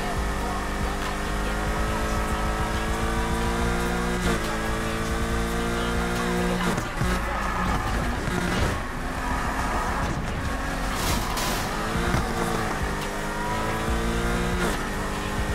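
A sports car engine roars at high revs, rising in pitch and dropping sharply with each gear change.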